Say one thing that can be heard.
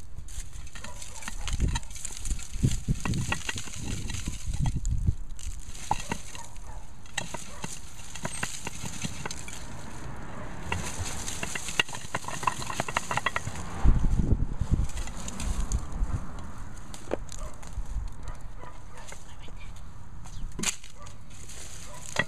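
Hands dig and scrape through dry soil.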